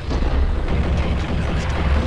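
A gun fires a shot.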